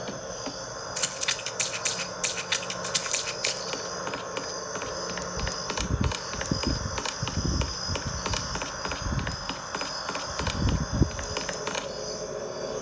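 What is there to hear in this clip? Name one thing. Footsteps crunch steadily on gravel, heard through a small speaker.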